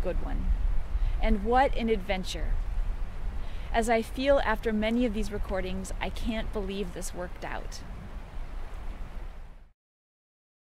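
A woman speaks cheerfully and close up, outdoors.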